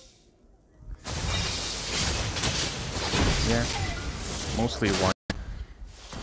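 Game battle effects clash and whoosh loudly.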